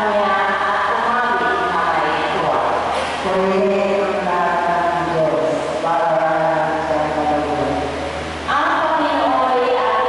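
An elderly woman sings slowly into a microphone, heard through loudspeakers in an echoing hall.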